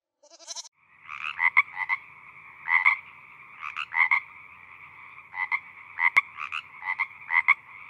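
A frog croaks over and over in quick bursts.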